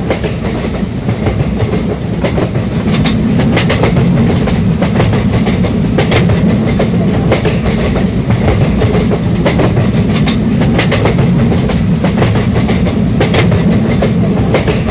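Train wheels clatter over rail joints in a repeating rhythm.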